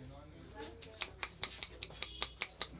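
A barber's hands rapidly slap and chop on a man's bare scalp.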